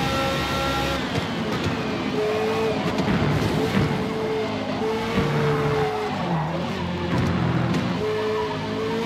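A racing car engine drops in pitch as the car brakes hard for a corner.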